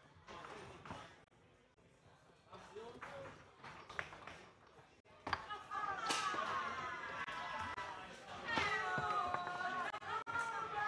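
A hard ball clacks against plastic players and rattles around a table.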